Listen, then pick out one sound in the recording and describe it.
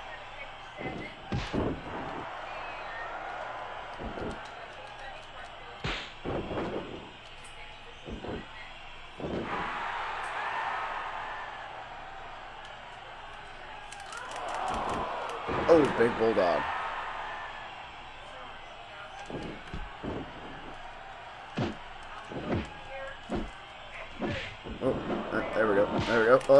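Heavy punches and body slams thud again and again.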